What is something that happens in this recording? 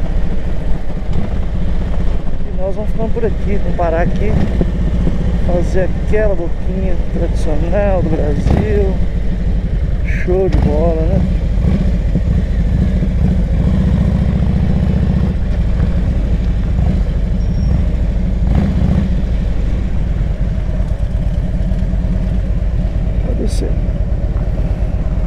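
A motorcycle engine rumbles steadily up close.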